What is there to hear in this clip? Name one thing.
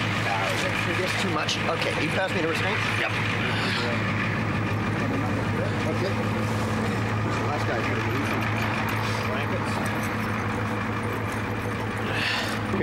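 A vehicle engine idles steadily nearby.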